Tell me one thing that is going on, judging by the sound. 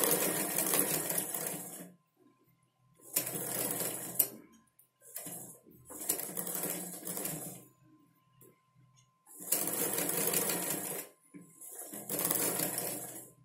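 A sewing machine runs in short bursts of rapid stitching.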